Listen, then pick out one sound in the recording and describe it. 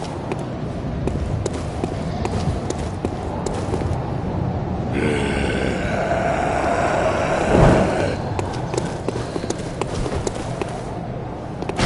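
Footsteps climb stone stairs.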